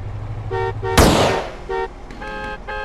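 A single pistol shot cracks and echoes.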